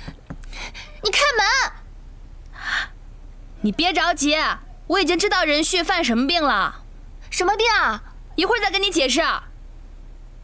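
A second young woman answers in a worried voice, close by.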